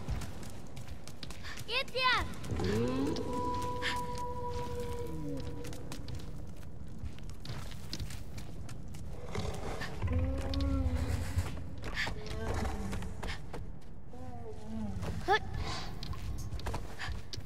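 Footsteps patter softly on a stone floor.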